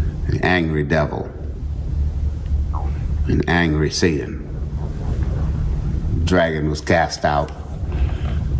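A middle-aged man speaks slowly and calmly into a close microphone, with long pauses.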